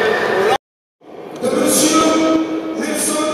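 A man speaks firmly to a group in a large echoing hall.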